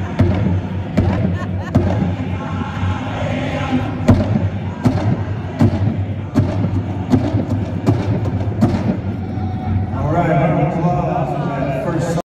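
Dancers step in time on a hard floor in a large echoing hall.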